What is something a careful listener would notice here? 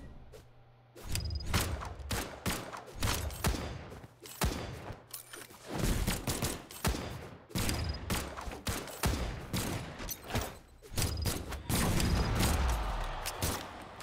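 Swooshing attacks rush past in a video game.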